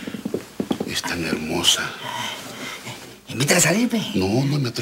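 A man speaks in a low, comforting voice, close by.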